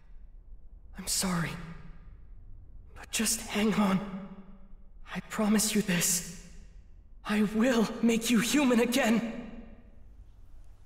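A young man speaks in a strained, tearful voice, close by.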